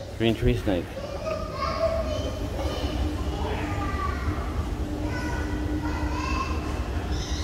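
An escalator hums and rumbles steadily close by.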